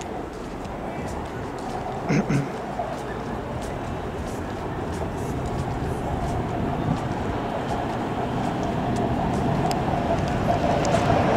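Wind blows steadily outdoors, with a dull rumble.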